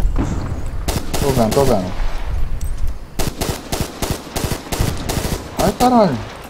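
A machine gun fires rapid bursts of loud shots.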